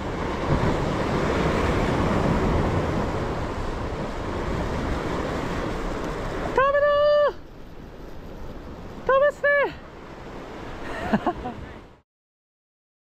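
Sea waves crash and wash against rocks.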